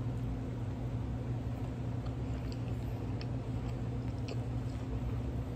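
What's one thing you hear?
A person chews and crunches food close to a microphone.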